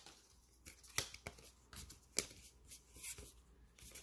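Playing cards flick and slide against each other.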